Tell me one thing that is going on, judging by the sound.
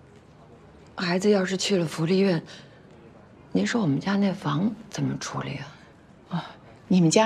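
A woman speaks earnestly and close by.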